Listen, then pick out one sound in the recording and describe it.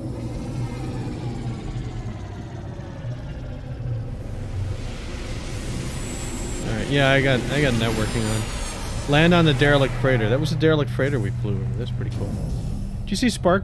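A spacecraft engine hums low and steady as it glides in to land.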